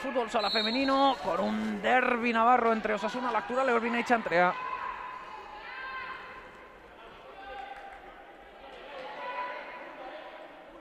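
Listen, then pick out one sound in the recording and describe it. Sneakers squeak on a hard indoor court.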